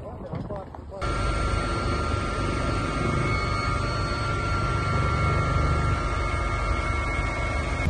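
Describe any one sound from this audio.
A helicopter roars steadily, heard from inside its cabin.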